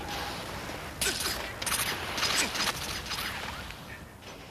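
A car slams into a man with heavy thuds.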